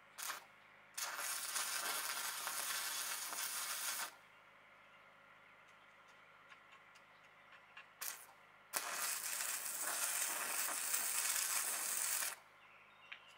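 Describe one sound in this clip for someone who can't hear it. An electric welder crackles and hisses in two long bursts.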